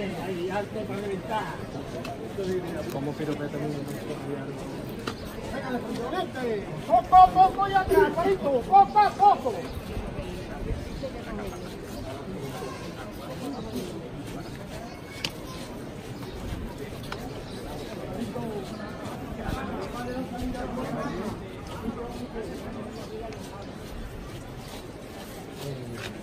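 A crowd of people talks and murmurs close by outdoors.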